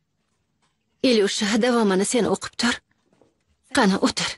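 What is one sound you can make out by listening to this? A woman speaks softly and closely.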